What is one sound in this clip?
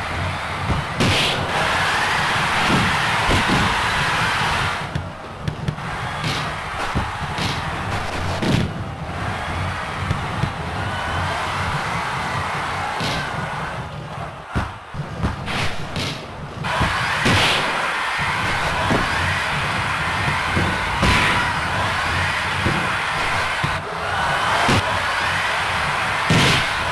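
A football is kicked with sharp thuds again and again.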